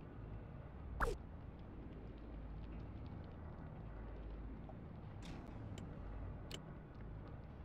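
Short electronic clicks and chimes sound from a game interface.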